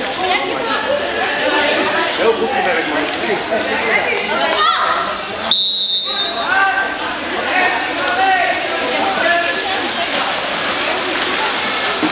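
Spectators shout and call out at the poolside.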